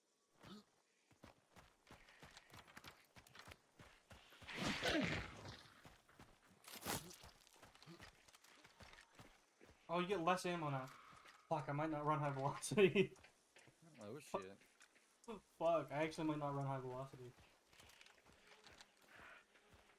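Footsteps crunch over loose gravel.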